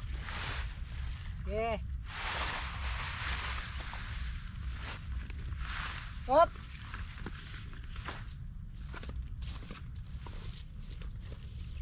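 Leaves and stems rustle and swish as a man drags a hose through the plants.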